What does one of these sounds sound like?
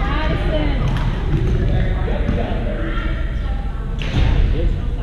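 A badminton racket strikes a shuttlecock in a large echoing gym.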